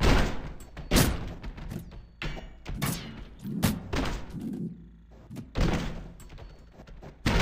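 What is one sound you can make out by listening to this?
Blades slash and strike with sharp, ringing hits.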